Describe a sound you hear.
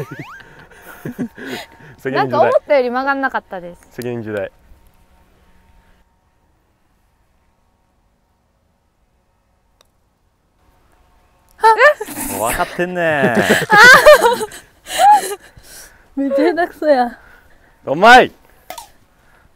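Young women talk and laugh with animation nearby.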